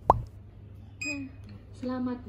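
A barcode scanner beeps once.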